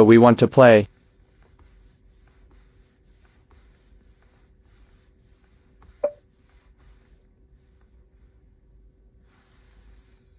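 A fingertip taps softly on a glass touchscreen.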